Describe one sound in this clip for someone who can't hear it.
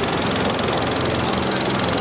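Water splashes up briefly.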